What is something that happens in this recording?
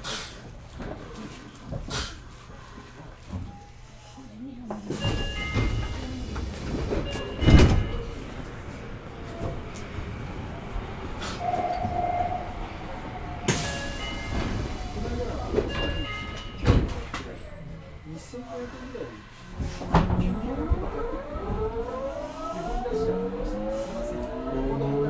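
A stopped train hums steadily and low.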